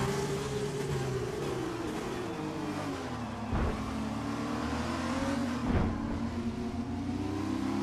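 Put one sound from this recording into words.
Other racing car engines buzz close by.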